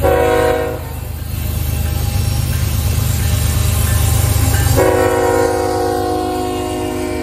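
Diesel locomotives rumble loudly as a freight train passes close by.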